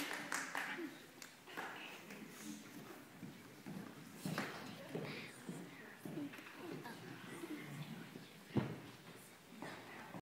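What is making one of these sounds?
A crowd murmurs and chats quietly in an echoing hall.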